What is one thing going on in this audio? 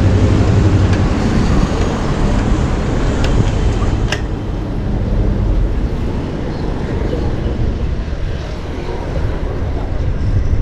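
Wind rushes loudly past while riding outdoors.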